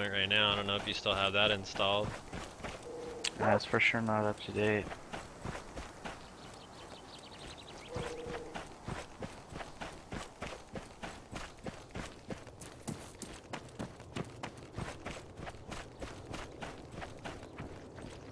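Footsteps thud quickly and steadily through grass as someone runs.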